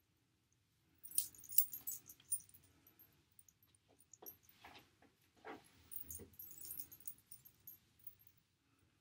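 Hair rustles and scratches close by as it is pulled and twisted.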